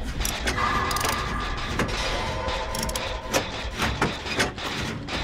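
Metal parts clank and rattle as a generator is worked on.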